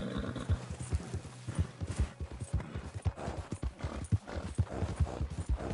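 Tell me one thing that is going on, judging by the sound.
Horse hooves crunch steadily through snow at a trot.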